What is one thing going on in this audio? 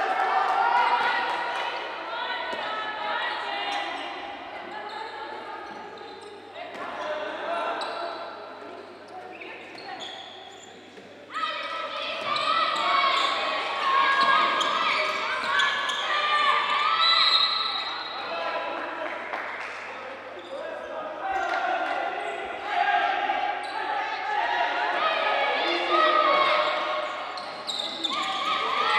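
A crowd cheers and chants in a large echoing hall.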